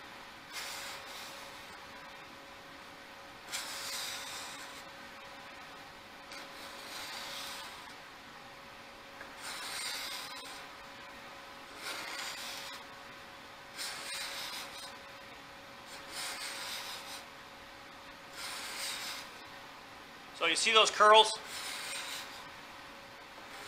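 A card scraper rasps in short, repeated strokes along wood.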